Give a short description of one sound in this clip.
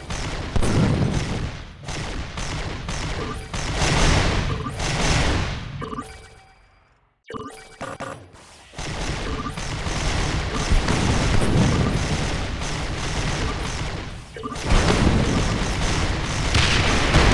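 Guns fire in rapid bursts.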